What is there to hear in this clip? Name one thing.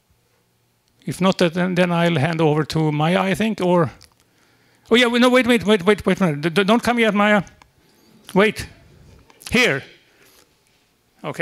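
An older man speaks calmly into a microphone over a loudspeaker in a large room.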